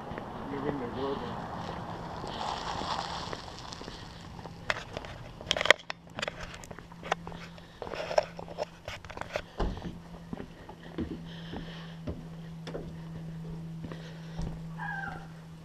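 Footsteps tap on concrete.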